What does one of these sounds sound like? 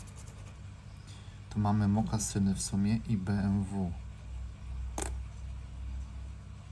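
A soft pom-pom rubs and scratches across a stiff card.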